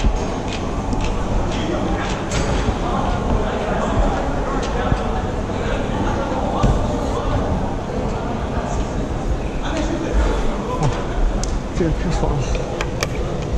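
Shoes scuff and tap on a climbing wall.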